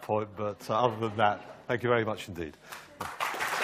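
A middle-aged man speaks to an audience through a microphone in a large hall.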